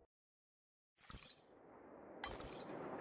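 A bright electronic chime rings.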